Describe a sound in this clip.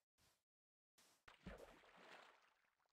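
Water splashes as a small boat is put in.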